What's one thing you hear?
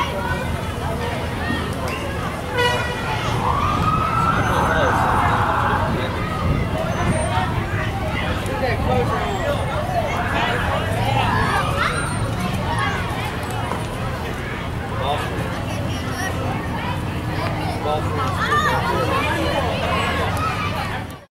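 A crowd of people chatter and call out outdoors.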